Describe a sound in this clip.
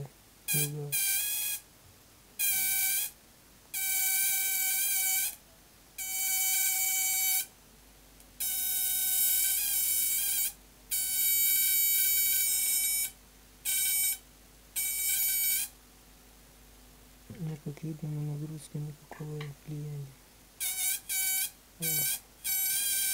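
An electric arc buzzes with a high, harsh whine in repeated bursts.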